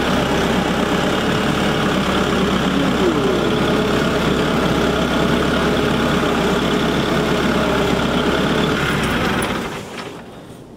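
A tractor engine rumbles steadily close by, then shuts off.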